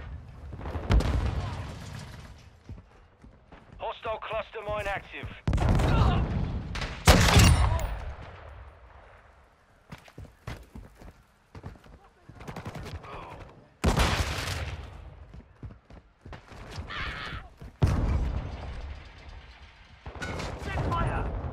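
A rifle fires loud, sharp shots that echo and slowly fade.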